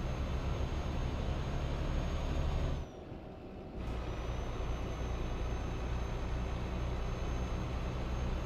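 A truck engine drones steadily while driving on a highway.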